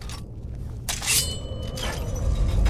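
A sword is drawn from its sheath with a metallic ring.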